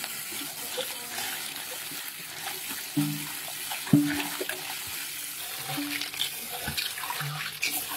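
Hands rustle and stir wet beetles.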